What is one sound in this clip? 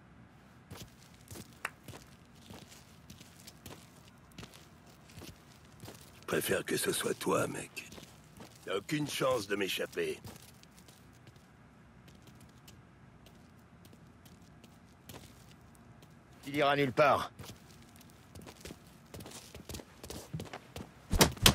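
Footsteps walk over a hard floor.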